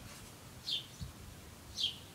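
A heavy concrete block is set down with a dull thud.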